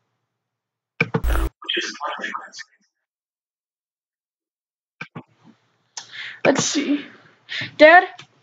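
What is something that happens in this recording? A boy talks casually, close to the microphone.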